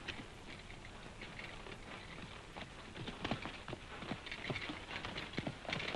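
Horses' hooves clop on the ground outdoors.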